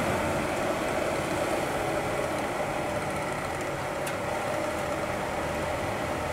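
A chainsaw idles steadily close by.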